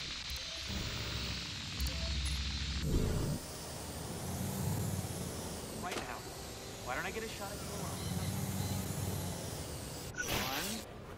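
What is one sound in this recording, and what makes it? A small drone's rotors whir steadily.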